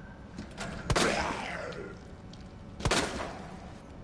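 A pistol fires with loud, sharp bangs.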